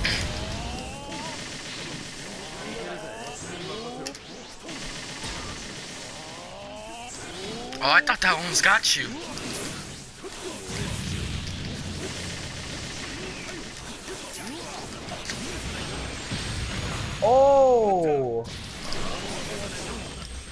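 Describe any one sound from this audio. Electric crackling and whooshing energy blasts sound throughout a fight.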